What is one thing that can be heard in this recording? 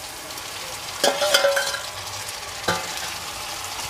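A metal lid clanks against a pot.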